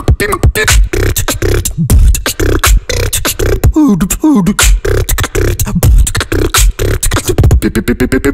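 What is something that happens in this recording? A young man raps fast and forcefully into a close microphone.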